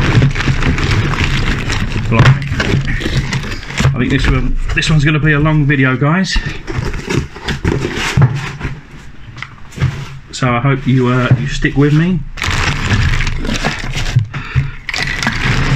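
Plastic bags crinkle and rustle as they are handled.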